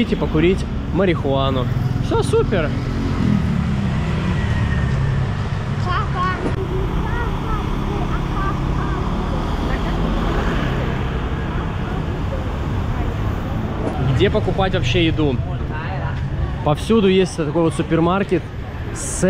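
Steady street traffic rumbles outdoors.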